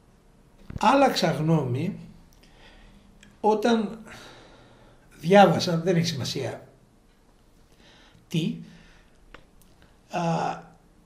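An elderly man speaks with animation, close by, in bursts with pauses.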